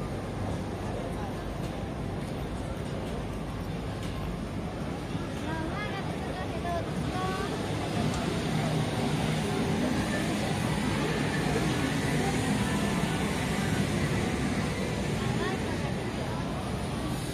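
A crowd murmurs and chatters on a busy street outdoors.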